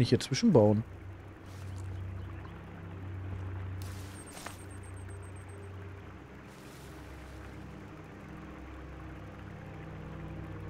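A heavy wooden log thuds into place.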